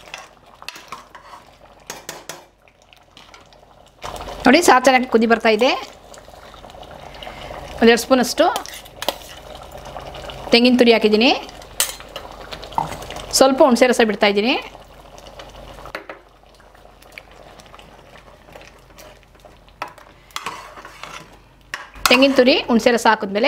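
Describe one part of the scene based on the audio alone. A metal ladle stirs thick curry in an aluminium pot.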